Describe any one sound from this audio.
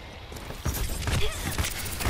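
An energy blaster fires in quick bursts.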